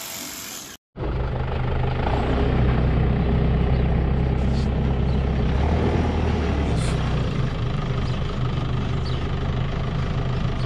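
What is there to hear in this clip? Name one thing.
A loader engine rumbles steadily nearby.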